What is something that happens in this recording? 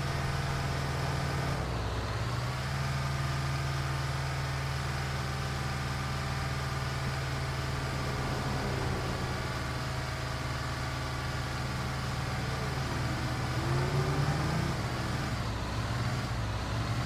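A heavy bus engine drones steadily, dropping briefly as it shifts gear.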